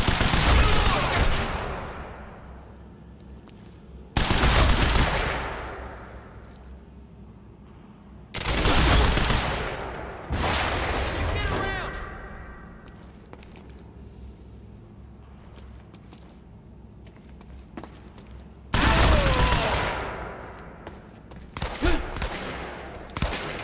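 Gunshots boom and echo through a large concrete hall.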